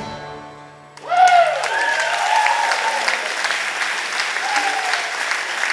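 An audience claps and cheers loudly in a large hall.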